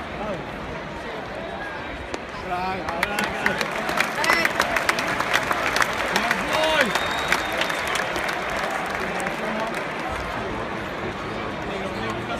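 A large stadium crowd murmurs and chatters all around, outdoors.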